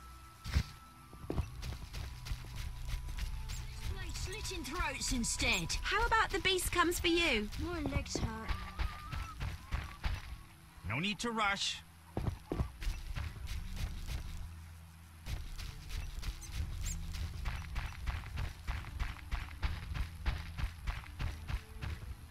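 Footsteps run quickly over grass and a dirt path.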